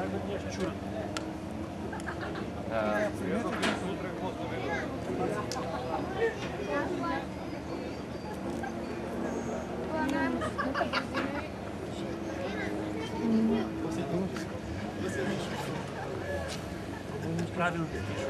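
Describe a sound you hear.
A crowd of men and women chatter close by, outdoors.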